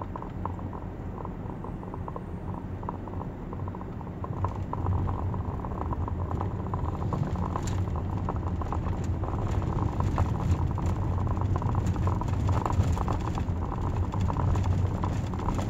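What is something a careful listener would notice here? A car engine hums steadily from inside the car, growing louder as it speeds up.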